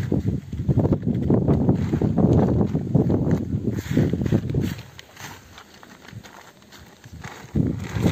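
Leafy stalks rustle as they are stuffed into a sack.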